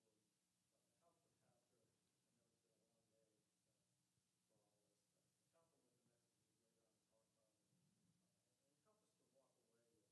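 An elderly man speaks calmly from a distance through a microphone in an echoing hall.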